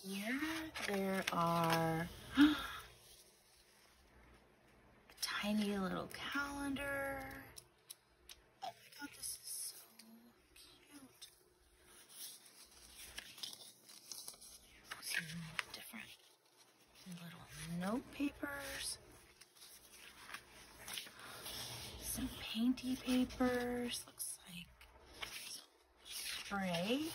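Paper and card rustle and slide as they are handled.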